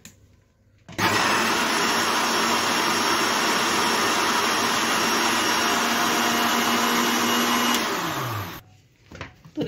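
A blender whirs loudly and steadily, then winds down.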